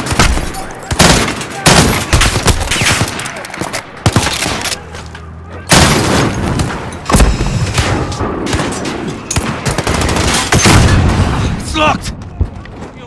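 Loud explosions boom and rumble nearby.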